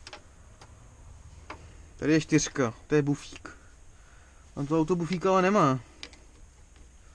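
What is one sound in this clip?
A plastic panel clicks and knocks as it is handled.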